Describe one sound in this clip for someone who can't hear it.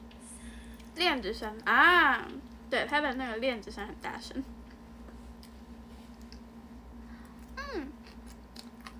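A young woman speaks close by in a cute, sing-song voice.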